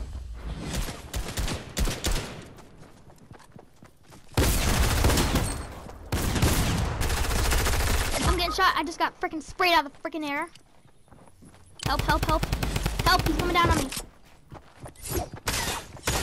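Gunshots boom in quick bursts.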